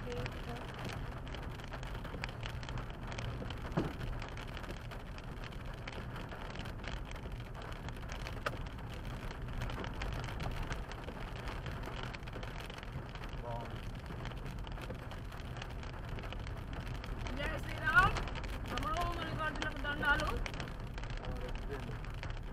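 A windshield wiper swishes across the glass.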